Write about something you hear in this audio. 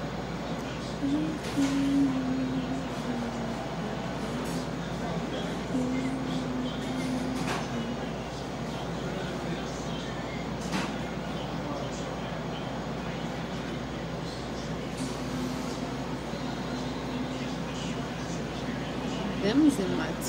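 A young woman hums softly close by.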